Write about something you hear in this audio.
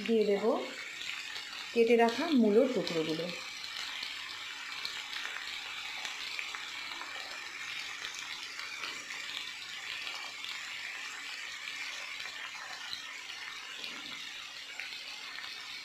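Vegetables sizzle steadily as they fry in a pan.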